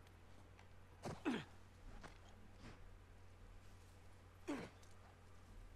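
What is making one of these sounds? A young woman speaks briefly into a close microphone.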